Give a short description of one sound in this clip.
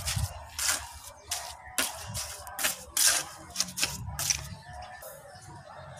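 A trowel scrapes and taps on wet cement.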